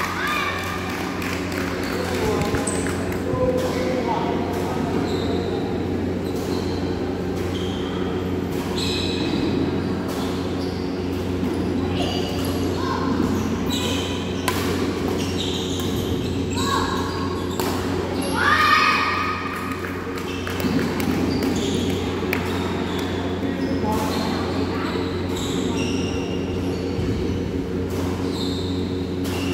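Rackets strike a shuttlecock back and forth in a rally.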